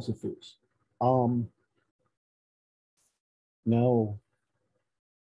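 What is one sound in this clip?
An elderly man speaks in short bursts over an online call.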